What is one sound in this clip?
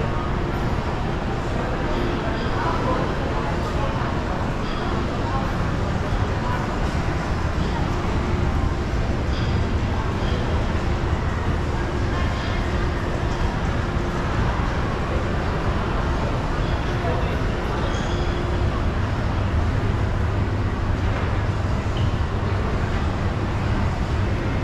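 A busy indoor crowd murmurs in a large echoing hall.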